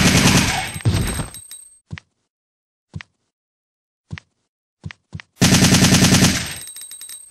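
A rifle fires rapid bursts in an echoing space.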